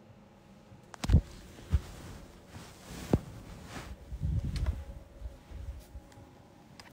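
Fabric rustles and knocks as a phone is moved around.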